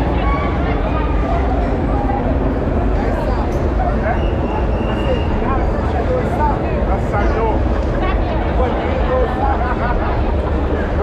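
A large crowd of men and women chatters and calls out all around outdoors.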